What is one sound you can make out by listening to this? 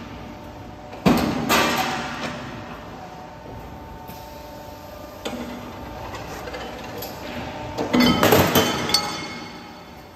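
A metal-bending machine clanks and thuds as it presses metal.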